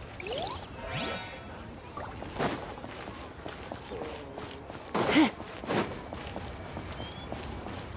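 Footsteps run quickly on stone.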